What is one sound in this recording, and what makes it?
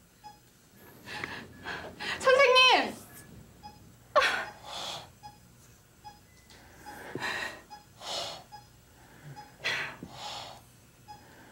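A young woman sobs and whimpers quietly.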